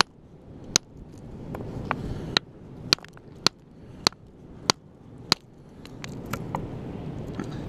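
A rock knocks sharply against stone.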